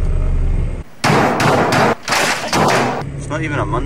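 A man bangs hard on a computer keyboard.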